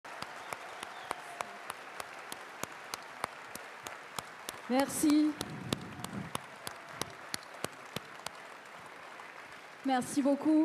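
A large crowd claps in steady rhythm in a big echoing hall.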